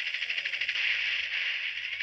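A rocket explodes with a loud blast.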